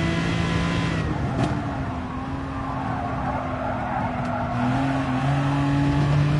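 A racing car engine drops in pitch as the car brakes for a corner.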